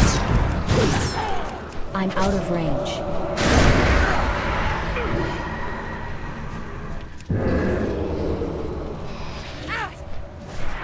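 Magical spell effects whoosh and crackle in a fight.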